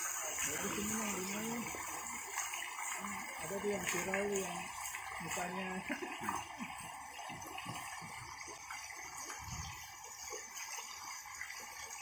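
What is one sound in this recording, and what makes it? Water splashes steadily from a small fountain into a pond.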